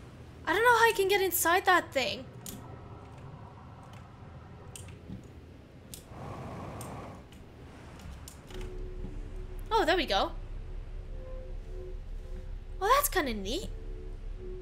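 A young woman talks in short bursts through a headset microphone.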